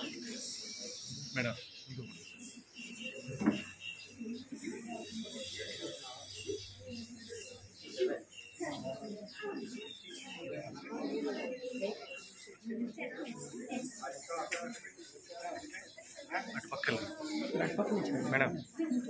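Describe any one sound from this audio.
A crowd of women and men chatter and talk over one another nearby.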